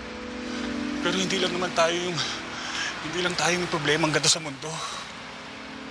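A man speaks tensely and close by.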